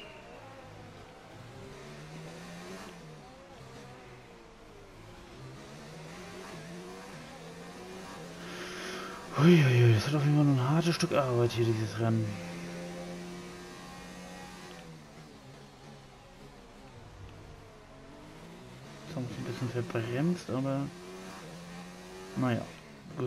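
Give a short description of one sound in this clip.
A racing car engine whines and revs up and down through the gears.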